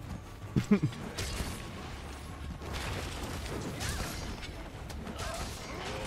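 Heavy blows strike with dull thuds.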